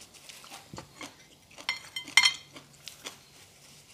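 Cutlery clinks and scrapes on a plate.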